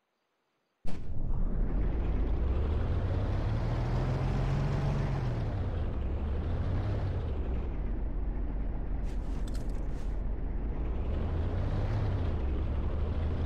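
A tank engine rumbles loudly and steadily, rising and falling in pitch.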